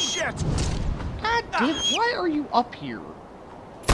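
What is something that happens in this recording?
An eagle screeches shrilly.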